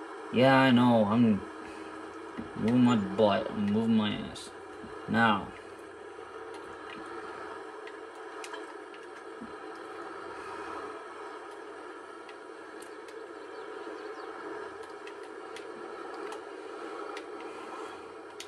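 A tractor engine hums steadily through a television speaker.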